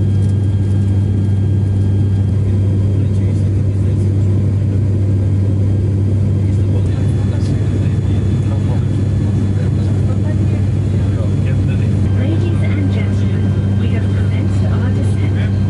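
The propellers of a turboprop airliner drone steadily inside the cabin in flight.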